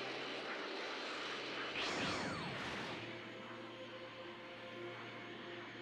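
A steady rushing whoosh of fast flight through the air.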